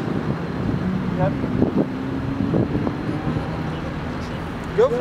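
Cars drive past along a road outdoors.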